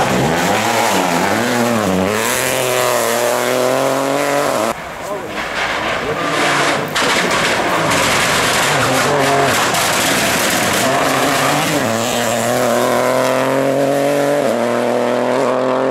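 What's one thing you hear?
Tyres crunch and spray gravel.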